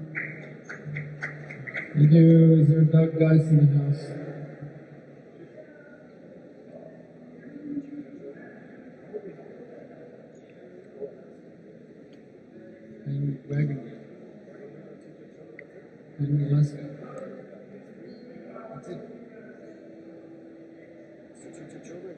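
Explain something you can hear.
A man talks quietly into a microphone nearby.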